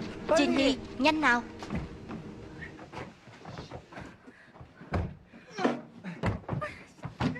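A young woman cries out sharply and urgently.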